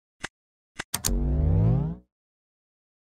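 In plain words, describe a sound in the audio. An oven whirs briefly.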